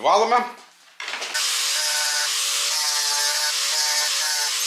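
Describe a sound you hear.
An angle grinder starts up and runs with a steady, high whine.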